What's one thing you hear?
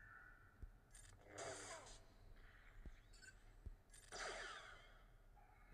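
Lightsabers hum and swing in a fight.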